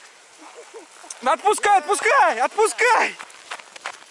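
A sled scrapes and hisses over snow.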